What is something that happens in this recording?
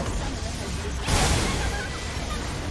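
A large structure explodes with a loud boom.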